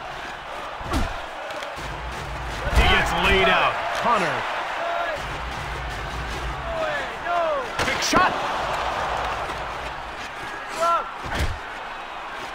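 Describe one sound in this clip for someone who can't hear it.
Hockey sticks strike a puck with sharp clacks.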